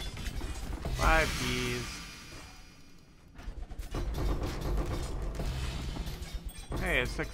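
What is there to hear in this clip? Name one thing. A bright chime rings out as loot drops.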